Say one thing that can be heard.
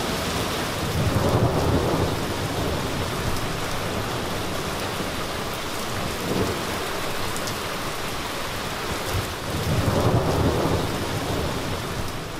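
Thunder rumbles deeply outdoors.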